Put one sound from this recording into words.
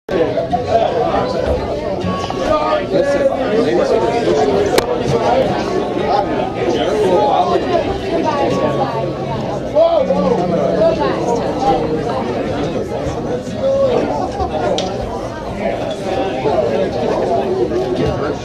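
A crowd of people chatters loudly in a room.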